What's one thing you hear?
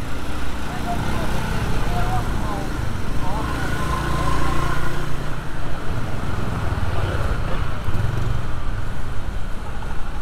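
Motor scooters buzz past close by.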